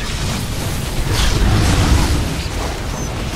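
Deep explosions rumble in a video game battle.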